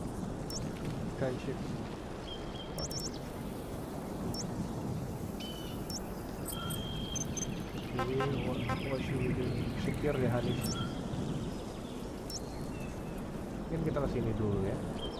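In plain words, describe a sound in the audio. Short electronic menu beeps chirp now and then.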